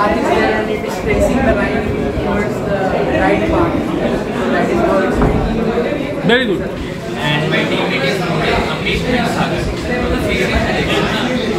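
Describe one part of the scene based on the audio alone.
A young man speaks calmly, presenting to an audience.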